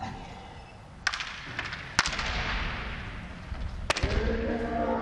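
Bamboo swords clack sharply against each other and against armour.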